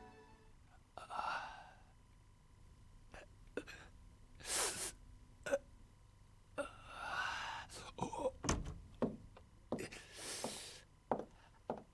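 An elderly man groans and gasps in pain nearby.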